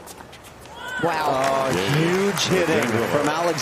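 A crowd applauds and cheers loudly.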